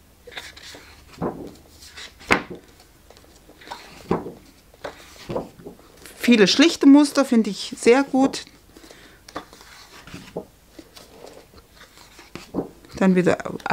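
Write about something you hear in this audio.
Sheets of paper rustle and flap as they are flipped over.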